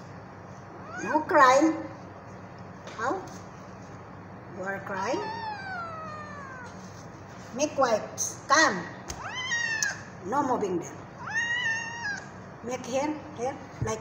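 A cat meows loudly and repeatedly.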